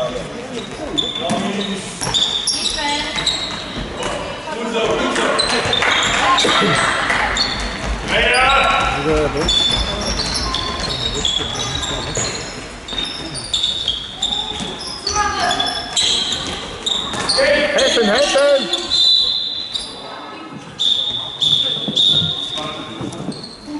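Children shout and call out to each other across the hall.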